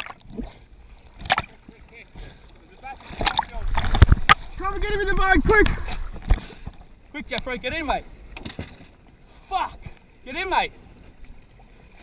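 A man shouts with excitement nearby, outdoors over open water.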